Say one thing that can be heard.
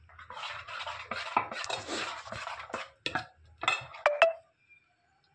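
A metal ladle scrapes and clinks against a metal bowl.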